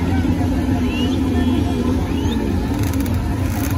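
Motorcycle engines idle nearby.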